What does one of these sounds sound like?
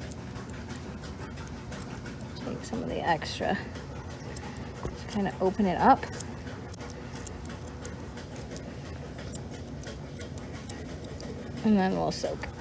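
Scissors snip quickly and lightly at fur.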